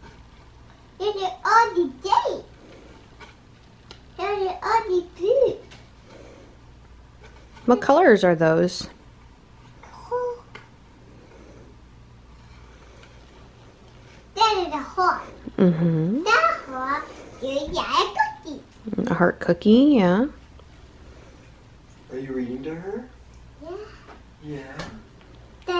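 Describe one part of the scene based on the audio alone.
A young boy reads aloud from a book, close by, in short bursts.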